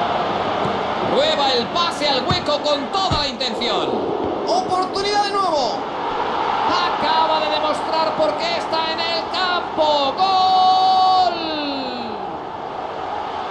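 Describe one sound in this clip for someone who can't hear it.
A stadium crowd cheers loudly after a goal.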